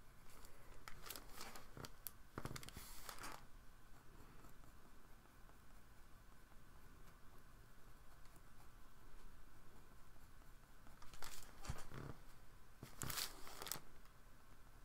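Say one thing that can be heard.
A card of stiff paper slides and taps on a table.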